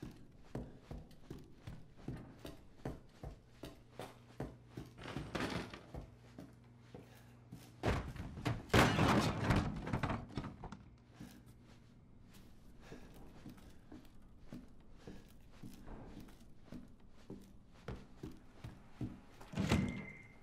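Footsteps thud slowly on creaking wooden floorboards.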